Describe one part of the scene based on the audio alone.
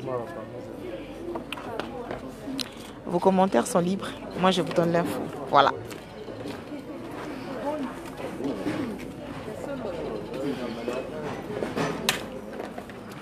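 A crowd of children chatters outdoors.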